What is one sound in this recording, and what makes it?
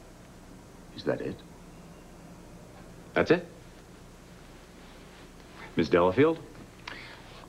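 A man speaks in short bursts.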